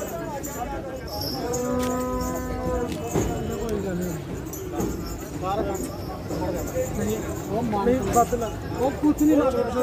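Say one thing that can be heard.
Men chat in the background outdoors.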